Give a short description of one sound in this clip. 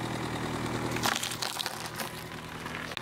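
A car tyre squashes cucumbers with a wet crunch.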